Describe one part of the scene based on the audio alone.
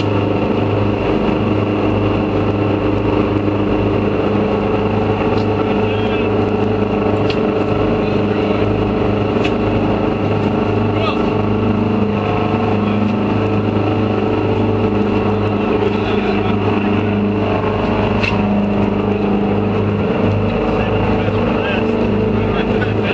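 Men talk casually nearby.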